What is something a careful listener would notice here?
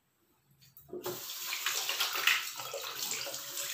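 Water runs and splashes into a sink.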